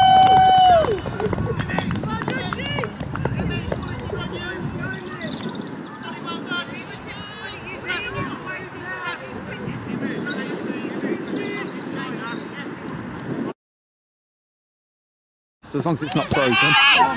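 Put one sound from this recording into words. Young women talk and call out to each other outdoors.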